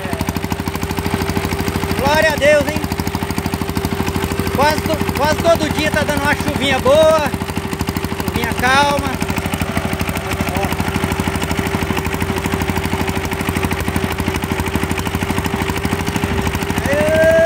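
A small diesel engine chugs loudly and steadily up close.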